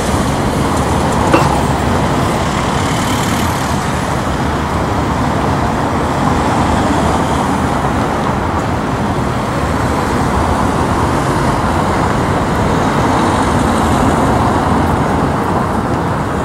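Cars drive past on a city street.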